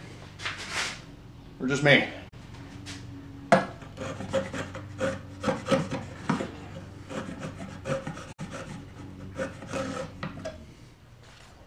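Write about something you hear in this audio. Small metal parts click and tap.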